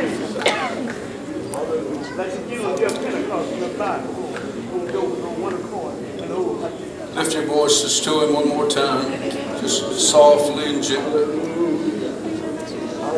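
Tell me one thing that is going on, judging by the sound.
A man speaks steadily over a loudspeaker in a large echoing hall.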